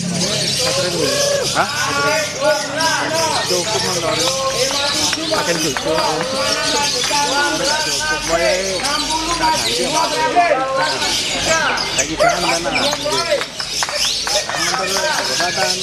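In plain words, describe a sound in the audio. A small parrot chirps and trills rapidly without pause.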